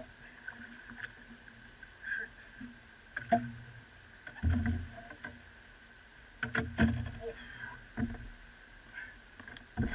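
A large catfish thrashes and splashes in the water beside a boat.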